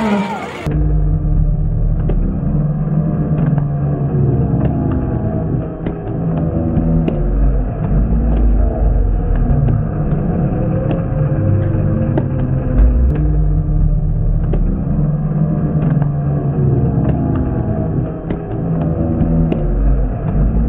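Small tractor engines rumble loudly as they race past.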